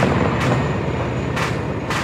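A helicopter drones overhead.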